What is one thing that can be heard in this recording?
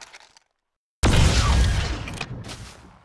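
A heavy energy weapon fires with a loud roaring blast.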